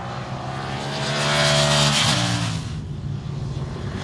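Several motorcycle engines roar past together.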